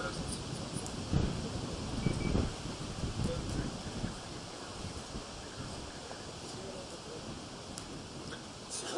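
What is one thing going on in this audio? A man strums an acoustic guitar outdoors.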